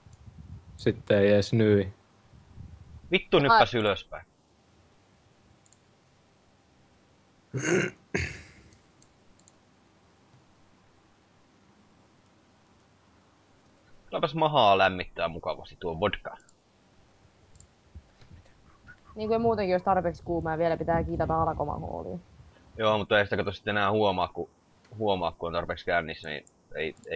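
A young man talks casually into a close microphone, in bursts with pauses.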